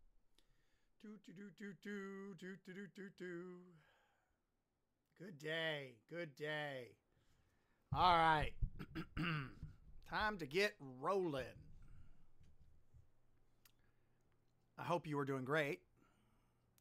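A man talks calmly and closely into a microphone, in short phrases with pauses.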